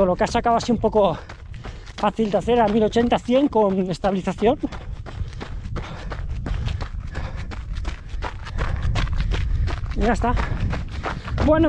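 A man talks with animation, close to a microphone.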